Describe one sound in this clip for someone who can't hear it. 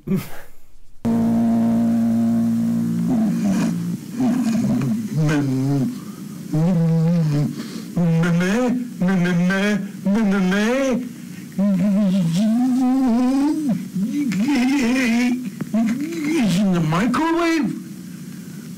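An older man speaks in a loud, drawn-out, worried voice.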